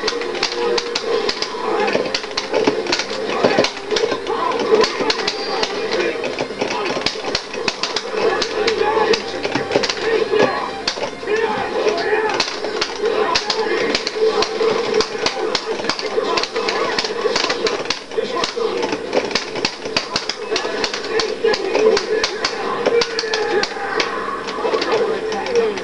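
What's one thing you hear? Rapid punches, blasts and explosions from a fighting video game crack through a television speaker.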